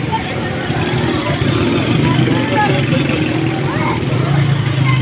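A busy street crowd chatters all around.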